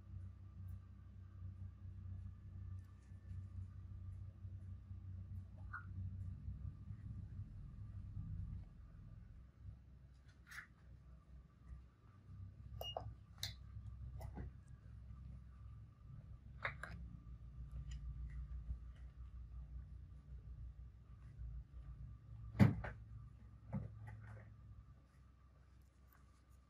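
Gloved fingers rub and squeak faintly against skin.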